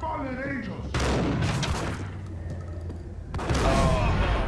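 A shotgun fires loud blasts indoors.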